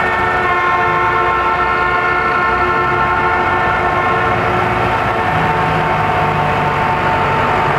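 Tractor engines rumble loudly as a line of tractors drives past close by.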